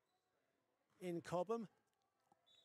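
A referee blows a sharp trilling whistle.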